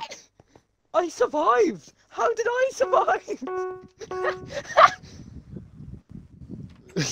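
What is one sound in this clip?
A young man laughs loudly.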